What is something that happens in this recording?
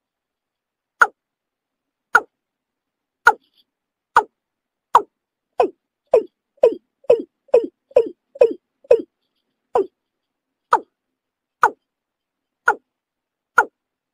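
A bird gives a series of loud, sharp clucking calls that speed up and then slow down again.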